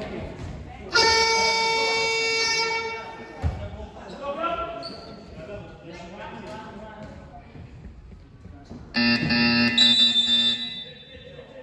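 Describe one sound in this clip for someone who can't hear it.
A scoreboard buzzer sounds loudly.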